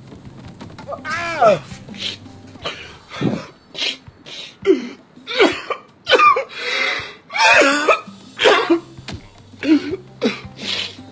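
A man wails and sobs loudly.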